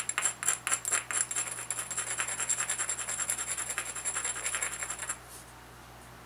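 A stone rapidly scrapes and grinds along the edge of a flint.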